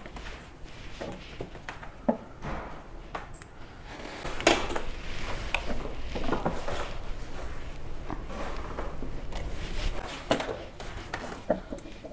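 A heavy printing press bed rumbles and clunks as it is cranked.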